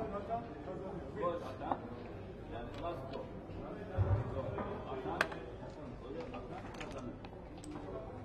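Backgammon checkers click and clack as they are moved on a wooden board.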